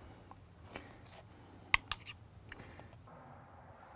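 A spoon scrapes spread across bread dough.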